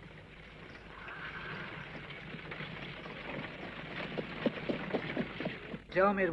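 A horse-drawn carriage rolls by.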